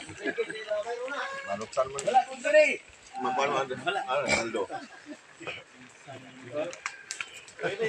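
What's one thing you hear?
Men talk with animation close by outdoors.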